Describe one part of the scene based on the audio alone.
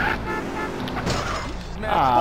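A car crashes into something with a thud.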